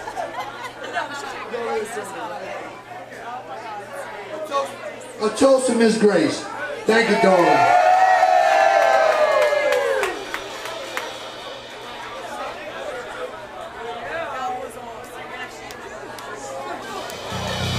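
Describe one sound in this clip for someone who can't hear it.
A crowd cheers and shouts close by.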